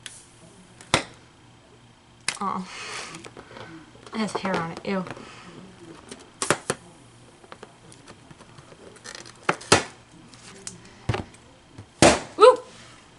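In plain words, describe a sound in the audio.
A balloon pops loudly.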